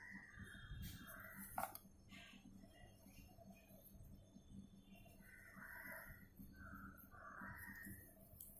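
A felt-tip pen scratches softly on paper.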